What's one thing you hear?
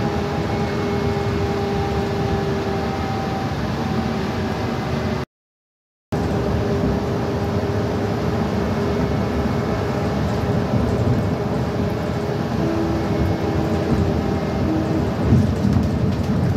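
Tyres rumble steadily on a road.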